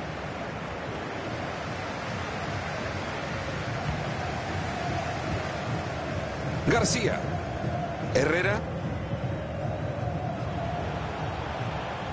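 A large stadium crowd roars and chants steadily.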